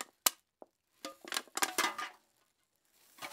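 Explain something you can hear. A metal spoon scrapes against a pot of rice.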